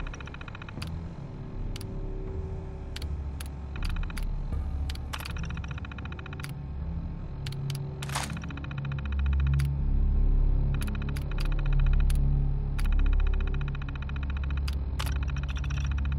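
Short menu clicks sound again and again.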